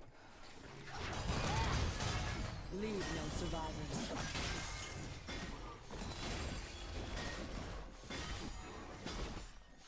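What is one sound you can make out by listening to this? Game sound effects of fighting, with hits and spell blasts, play.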